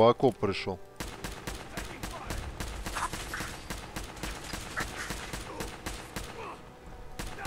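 A laser rifle fires a rapid burst of shots.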